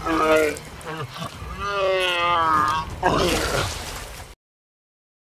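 Water splashes as something heavy drops into it.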